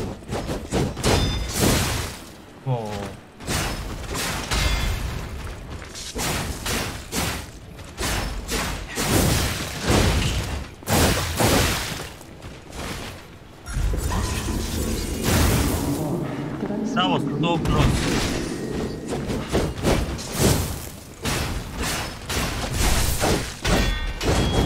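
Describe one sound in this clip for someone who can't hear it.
Crackling blasts and whooshes burst out again and again.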